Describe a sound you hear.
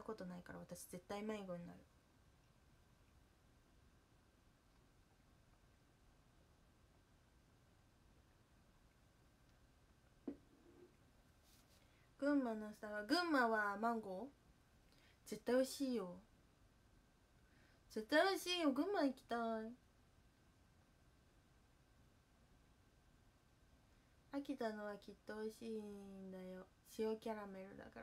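A young woman speaks softly and close by, in short bursts with pauses.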